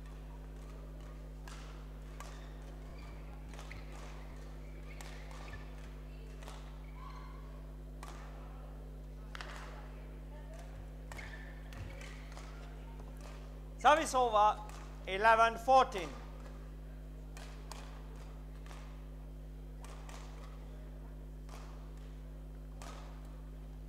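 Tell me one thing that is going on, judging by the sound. Rackets strike a shuttlecock in a quick rally, in a large echoing hall.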